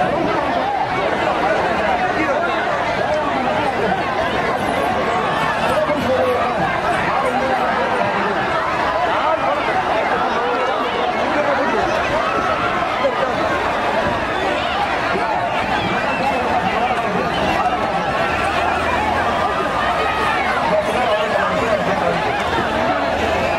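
A large outdoor crowd shouts and cheers throughout.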